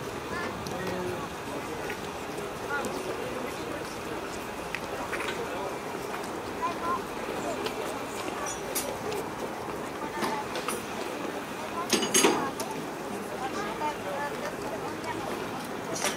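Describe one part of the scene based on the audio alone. Footsteps shuffle on a platform.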